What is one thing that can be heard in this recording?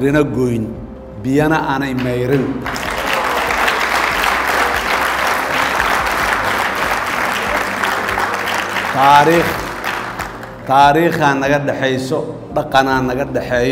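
An older man speaks into a microphone in a large hall, with pauses.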